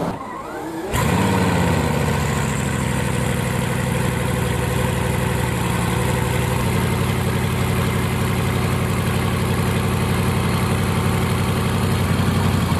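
A sports car's engine idles with a deep, steady rumble.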